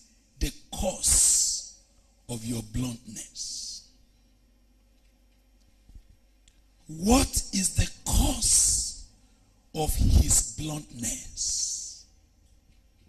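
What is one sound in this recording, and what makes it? A man preaches forcefully into a microphone, in bursts with pauses.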